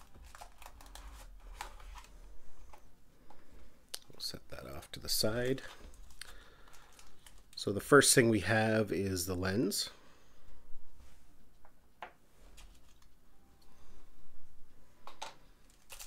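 Small plastic parts click and tap against a hard surface.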